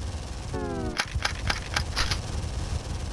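A video game gun fires in short bursts.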